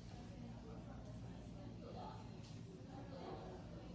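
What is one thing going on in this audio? A brush taps softly against a small jar.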